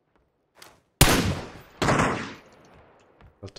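A rifle fires loud shots indoors.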